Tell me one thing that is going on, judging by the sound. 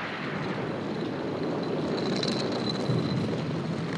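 Grain trickles and patters onto a millstone.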